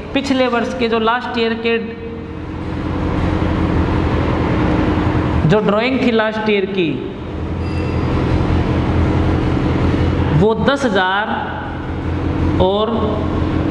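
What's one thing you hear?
A woman speaks calmly and explains, close by.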